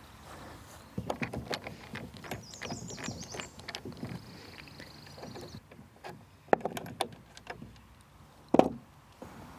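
A screwdriver turns a screw in a metal drawer handle with small clicks.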